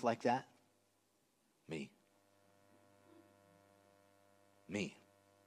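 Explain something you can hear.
A man speaks calmly through a microphone, in short phrases with long pauses.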